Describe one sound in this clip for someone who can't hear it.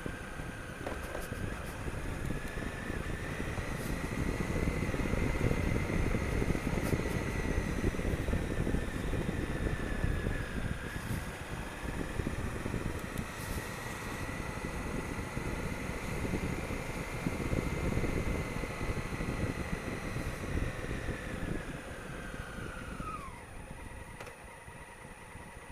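Wind rushes past the rider's helmet.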